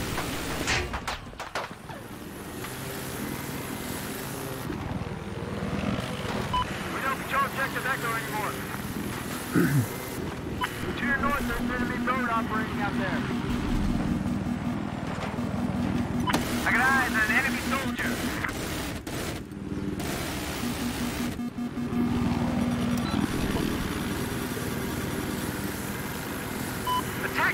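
A helicopter engine drones with whirring rotor blades.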